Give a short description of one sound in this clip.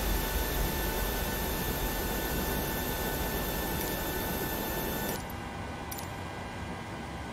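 A jet airliner's engines hum and whine steadily.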